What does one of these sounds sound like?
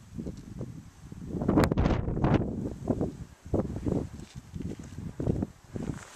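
Tall grass rustles in the wind.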